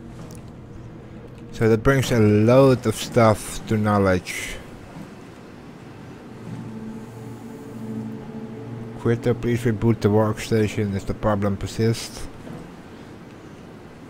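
Machinery hums low and steadily.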